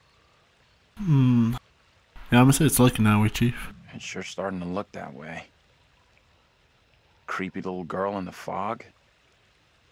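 A young man speaks quietly and close by.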